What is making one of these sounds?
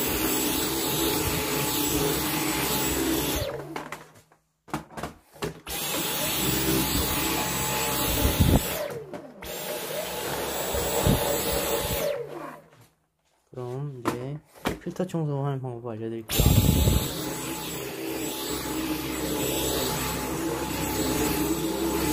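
A cordless vacuum cleaner whirs loudly, with pauses.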